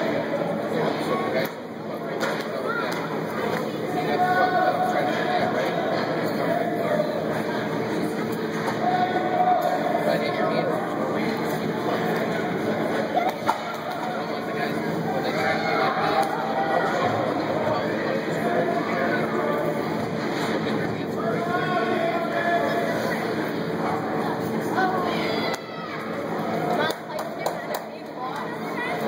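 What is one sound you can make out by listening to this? Children call out and chatter in a large echoing hall.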